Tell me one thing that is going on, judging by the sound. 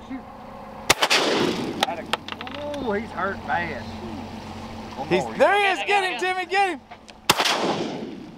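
Water splashes sharply as a fish jumps.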